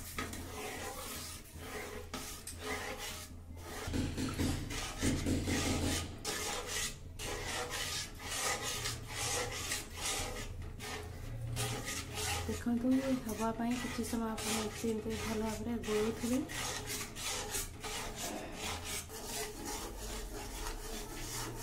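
A metal spoon scrapes and taps against a metal pan.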